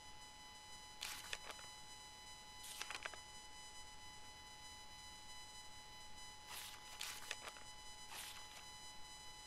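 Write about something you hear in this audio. Paper notebook pages flip.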